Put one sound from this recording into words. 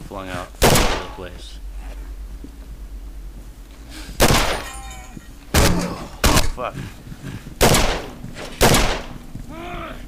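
A pistol fires loud single shots, each ringing briefly in an echoing space.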